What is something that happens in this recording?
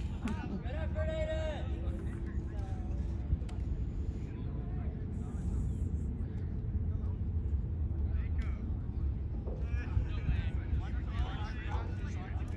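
Young women call out across an open field.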